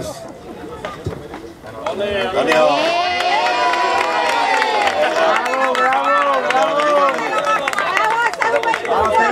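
Hands clap in applause.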